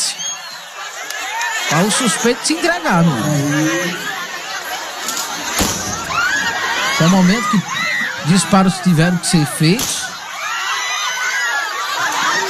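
A large crowd shouts and chatters loudly.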